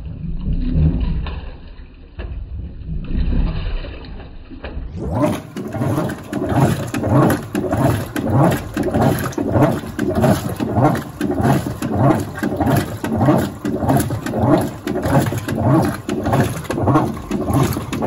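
A washing machine agitator churns back and forth with a rhythmic whoosh.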